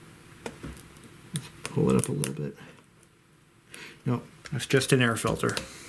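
A screwdriver scrapes and clicks against a metal casing.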